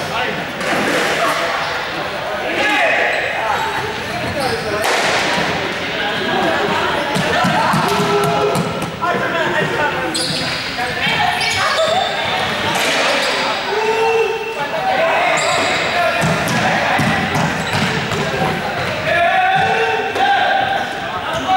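Children and teenagers chatter and shout throughout a large echoing hall.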